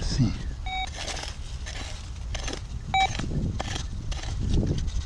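A small pick digs and scrapes into dry soil.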